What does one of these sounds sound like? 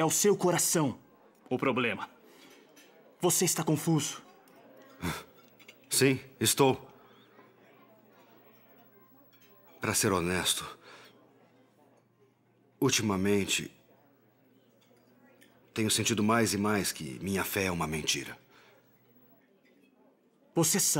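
A man speaks intently in a low, serious voice, close by.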